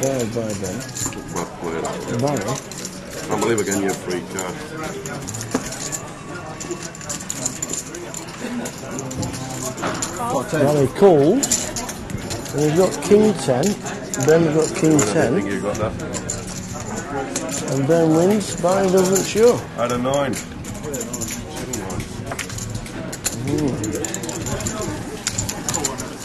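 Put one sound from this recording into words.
A crowd murmurs in a busy room.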